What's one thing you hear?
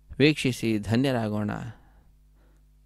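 A man chants loudly.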